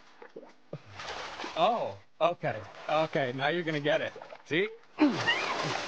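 A young man talks playfully nearby.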